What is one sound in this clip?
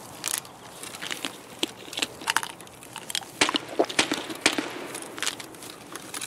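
Gear clicks and rustles as a small item is handled.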